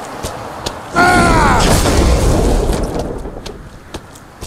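A sword strikes hard with a heavy impact.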